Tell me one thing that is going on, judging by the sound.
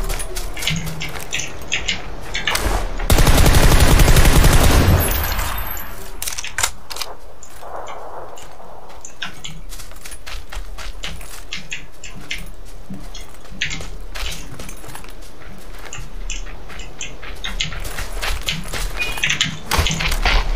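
Footsteps crunch quickly over dirt and grass.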